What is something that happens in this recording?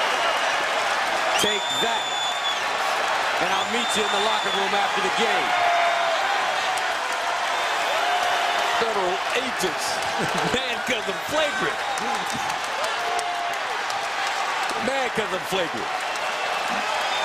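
A large crowd cheers and roars loudly in a big echoing arena.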